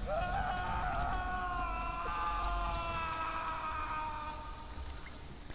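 A man screams in agony, the cry slowly fading.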